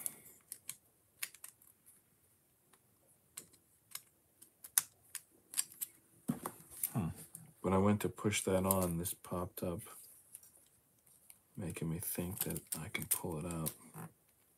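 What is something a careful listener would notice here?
Small plastic pieces click and rattle as they are handled and snapped together.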